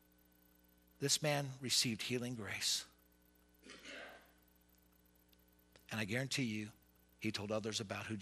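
A man speaks with animation through a microphone in a room with some echo.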